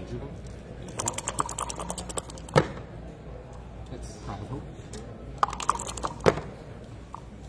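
Dice rattle inside a cup.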